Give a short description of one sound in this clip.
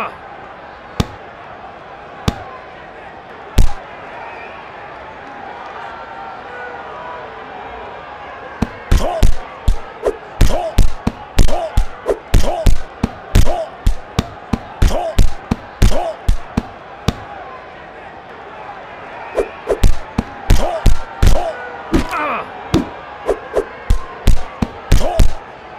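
Punches land with sharp thuds in quick bursts.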